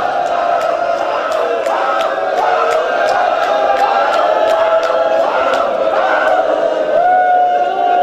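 Men slap their chests with their hands in a steady rhythm.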